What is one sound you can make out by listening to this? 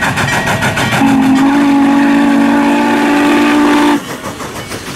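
A steam locomotive's whistle blows loudly and steadily.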